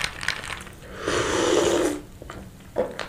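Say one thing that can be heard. A young man slurps a drink from a glass close to a microphone.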